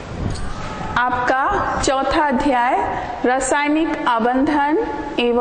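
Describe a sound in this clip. A woman speaks clearly and steadily, as if teaching.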